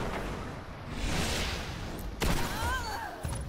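A gun fires loud shots in a quick burst.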